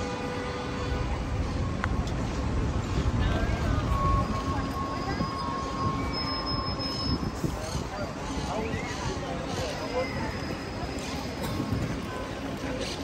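Traffic hums along a busy street outdoors.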